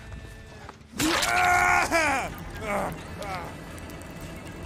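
A young man shouts loudly with excitement into a microphone.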